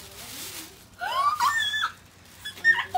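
A girl squeals excitedly up close.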